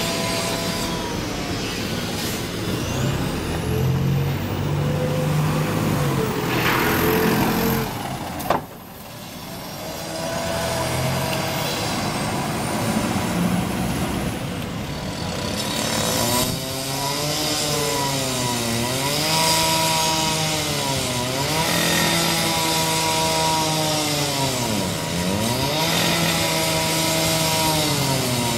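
A bus engine rumbles close by and pulls away.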